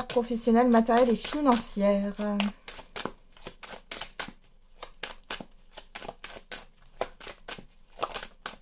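Playing cards riffle and flick as a deck is shuffled by hand.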